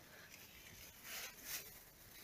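Leaves rustle close by.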